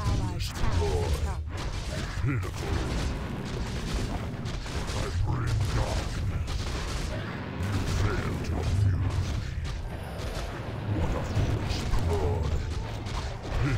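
Weapons clash and spells burst in a fight.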